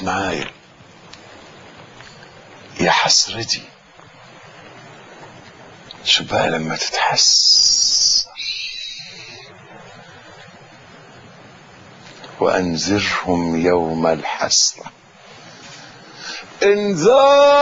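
An elderly man speaks with feeling into a microphone, in short bursts with long pauses.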